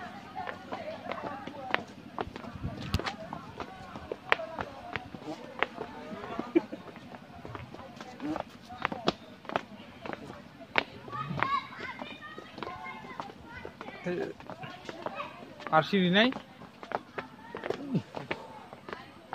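Footsteps tap steadily on stone steps.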